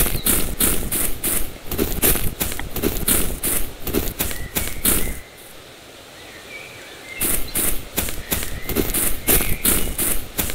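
Quick footsteps thud over grass.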